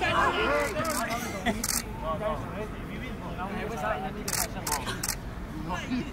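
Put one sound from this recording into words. Young men chat and laugh nearby.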